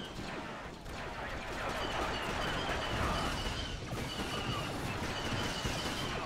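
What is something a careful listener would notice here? Blaster rifles fire in bursts.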